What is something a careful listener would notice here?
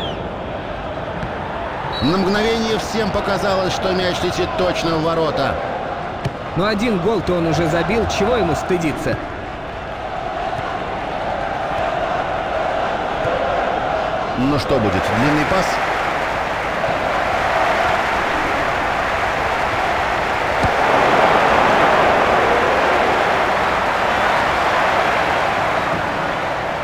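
A large stadium crowd roars steadily, swelling louder at times.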